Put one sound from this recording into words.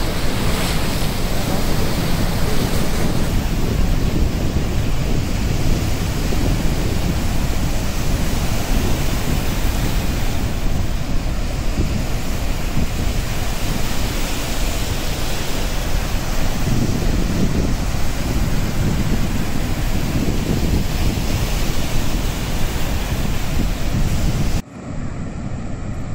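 Water roars steadily as it pours down a dam's spillways.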